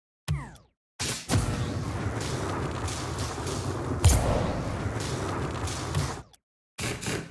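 A video game car's rocket boost roars.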